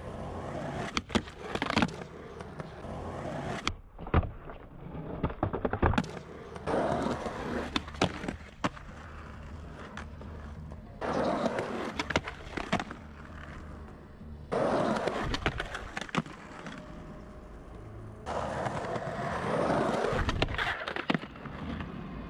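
A skateboard clacks and slaps against concrete.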